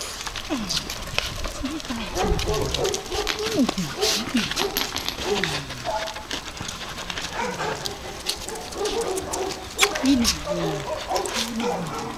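Puppies whine and yelp close by.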